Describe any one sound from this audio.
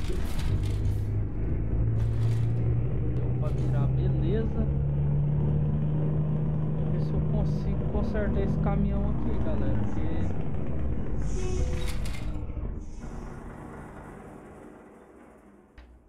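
A truck engine rumbles steadily, then fades away.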